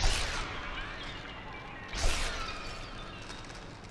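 A figure shatters like breaking glass.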